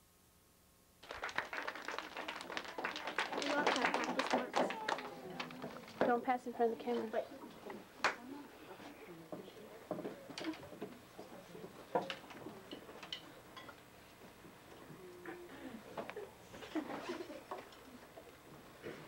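A young boy talks loudly on a stage.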